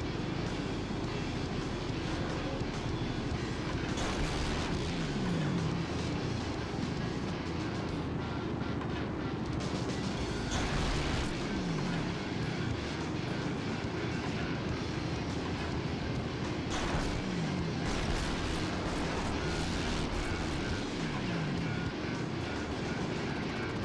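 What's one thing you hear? A motorbike engine buzzes and revs steadily.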